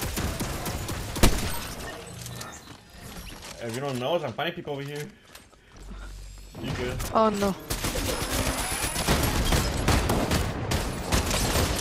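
Guns fire in sharp, rapid shots.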